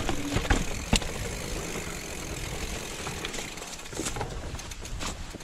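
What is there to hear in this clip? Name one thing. Bicycle tyres rattle and bump over a rough stone path.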